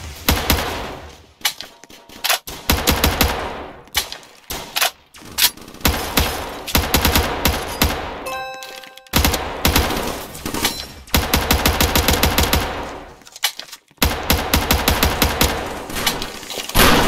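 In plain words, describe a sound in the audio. Rapid rifle gunfire rattles in bursts.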